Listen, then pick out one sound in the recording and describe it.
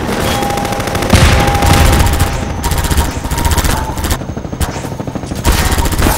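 Gunshots crack in rapid bursts.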